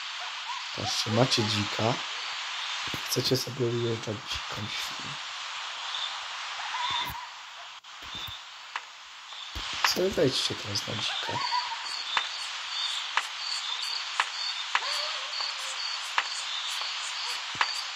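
A pig grunts and snorts.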